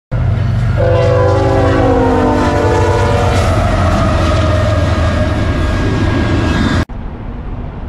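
A freight train rumbles loudly past.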